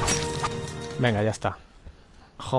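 Several men groan and moan hoarsely.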